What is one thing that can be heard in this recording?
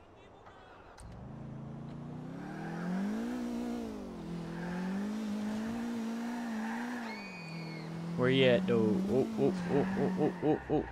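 A car engine starts and revs as a car drives off.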